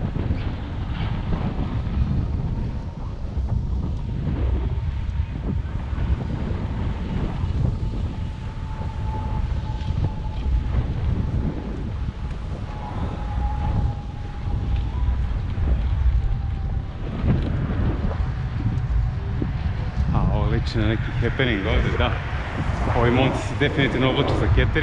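Wind rumbles and buffets steadily while moving along outdoors.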